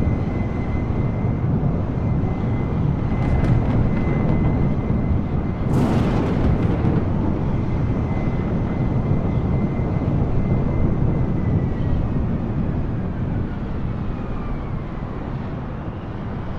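A high engine whine holds steady, then slowly drops in pitch.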